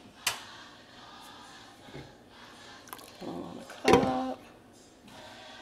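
Water bubbles at a boil in a pot.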